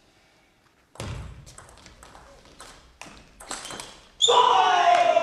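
A ping-pong ball clicks back and forth on paddles and a table in a large echoing hall.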